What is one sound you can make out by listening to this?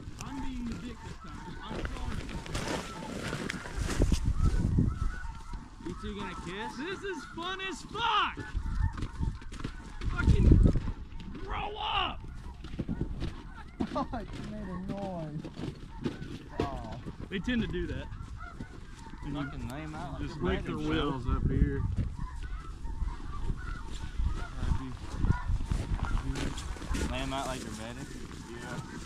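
Men talk to each other outdoors.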